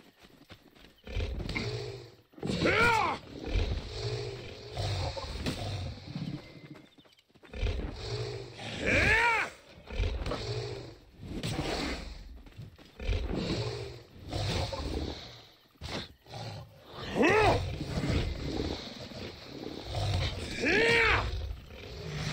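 Blades swish and strike in a fight.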